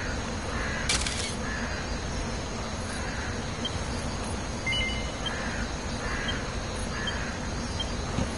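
Soft electronic blips sound as a menu opens and closes.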